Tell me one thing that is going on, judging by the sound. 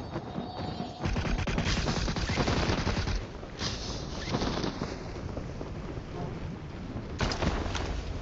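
Wind rushes loudly past during a parachute descent.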